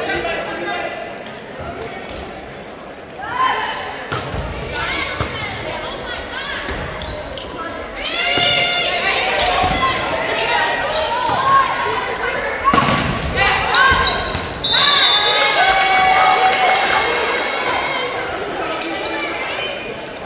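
Young women call out and shout to each other in a large echoing gym.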